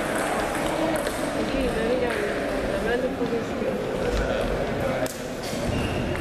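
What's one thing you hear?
Several people talk in the background of the hall.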